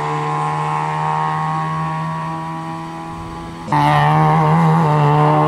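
A racing car engine roars at high revs, growing louder as the car passes close by.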